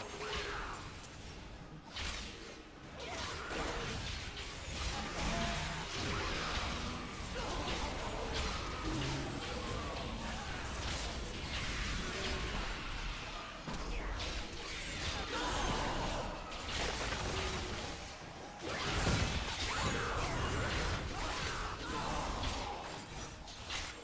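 Game spells crackle and explode in quick bursts.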